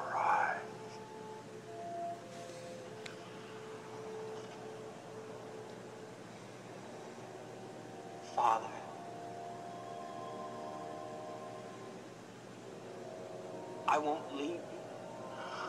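A young man speaks softly and sadly, close by.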